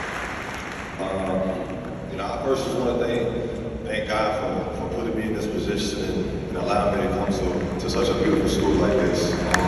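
A young man speaks through a microphone and loudspeakers, echoing around a large arena.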